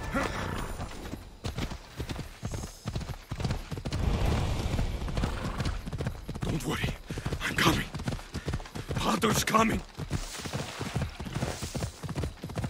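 A horse gallops with quick, rhythmic hoofbeats on a dirt path.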